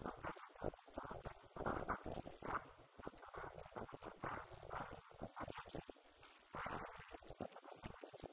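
A woman speaks with animation through a microphone and loudspeaker in an echoing hall.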